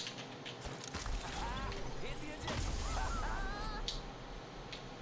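A launch pad bursts with a loud rushing whoosh.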